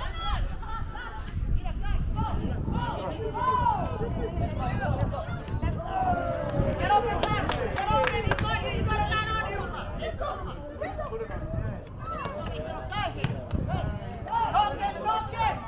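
Players shout and call out to each other across an open field.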